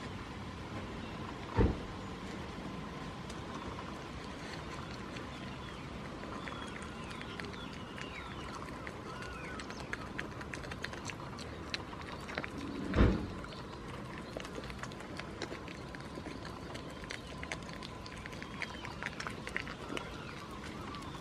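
A goat chews and crunches food close by.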